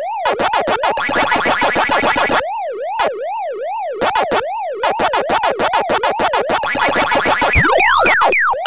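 A fast wavering electronic siren plays as game ghosts turn vulnerable.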